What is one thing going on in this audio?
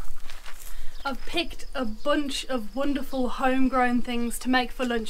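A woman speaks calmly and cheerfully close by.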